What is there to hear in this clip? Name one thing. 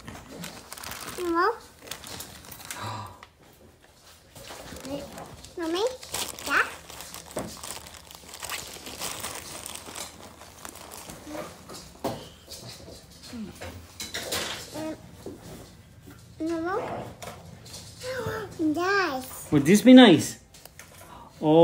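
A little girl talks and squeals excitedly close by.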